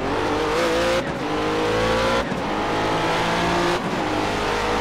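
A racing car engine drops briefly as the gears shift.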